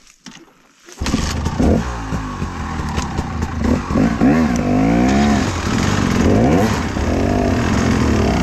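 A dirt bike engine starts up and revs up and down nearby.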